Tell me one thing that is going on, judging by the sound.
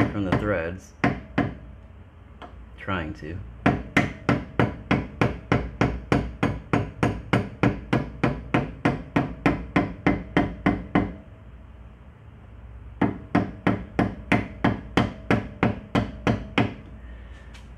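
A hammer strikes a steel punch in a steady rhythm, ringing with metallic clangs.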